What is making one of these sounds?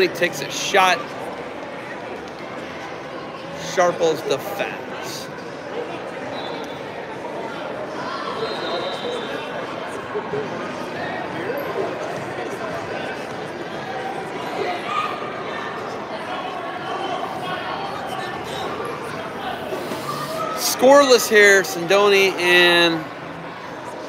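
An adult spectator shouts encouragement from the sidelines.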